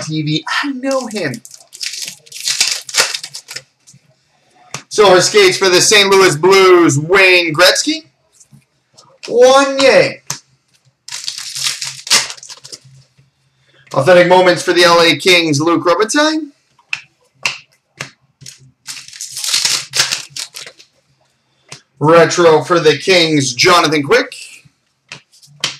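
Trading cards rustle and slap as they are shuffled by hand.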